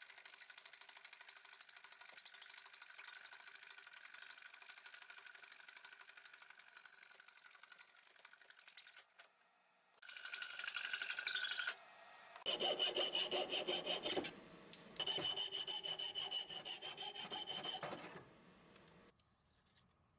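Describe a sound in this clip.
A coping saw rasps back and forth through wood.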